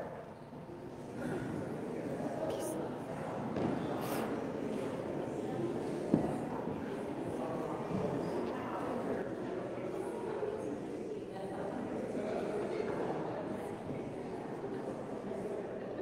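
A crowd of men and women chat and greet one another in a large echoing hall.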